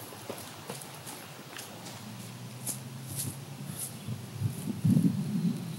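A man runs across grass with quick footsteps.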